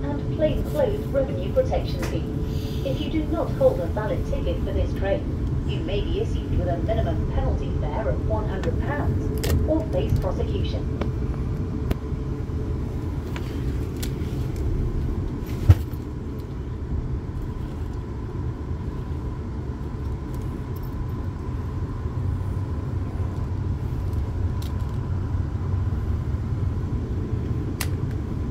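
A train carriage rattles and clatters now and then.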